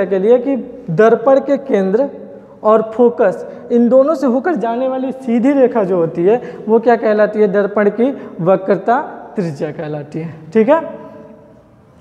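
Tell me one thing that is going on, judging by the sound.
A young man speaks clearly and steadily, as if teaching.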